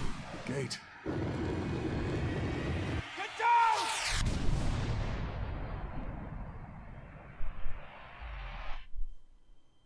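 Fire roars and whooshes loudly.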